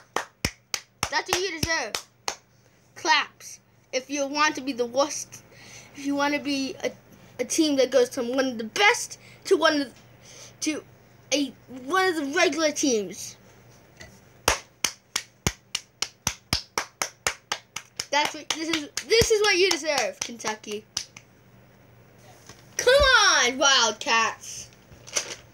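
A young boy talks with animation, close by.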